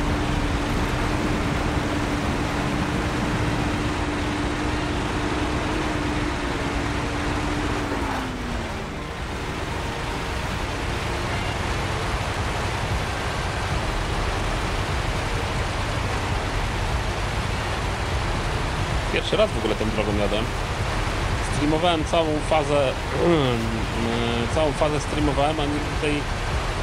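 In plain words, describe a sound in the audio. A truck engine rumbles steadily as it drives over rough ground.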